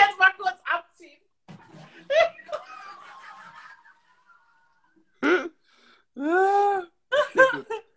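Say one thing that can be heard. A young woman laughs loudly over an online call.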